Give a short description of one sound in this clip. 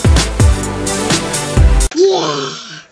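A short musical jingle plays.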